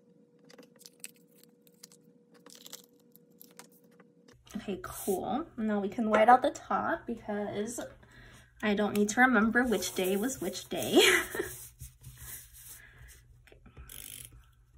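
Paper rustles and crinkles as sticker sheets are handled.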